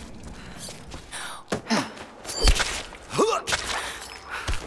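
Blows and scuffling thud during a short struggle.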